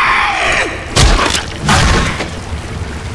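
A wooden bat swings and thuds into something with heavy blows.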